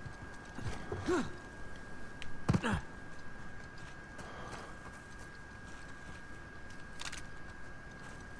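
Footsteps thud on rocky ground.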